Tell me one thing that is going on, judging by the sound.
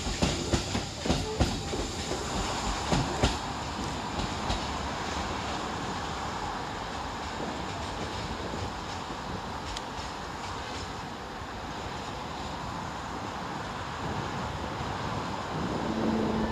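A train rumbles and fades as it moves away into the distance.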